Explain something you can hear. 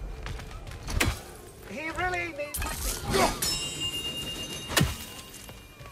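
An axe strikes hard with a sharp thud.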